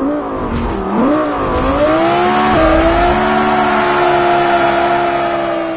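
A sports car engine roars as the car accelerates, shifting up through the gears.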